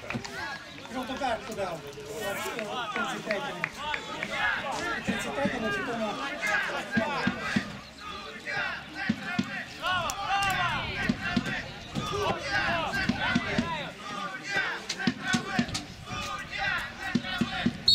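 A crowd of spectators chatters and shouts from the sidelines, outdoors.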